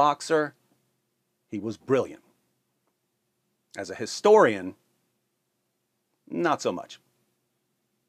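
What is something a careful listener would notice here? A young man speaks calmly and close to a microphone, in short phrases with pauses.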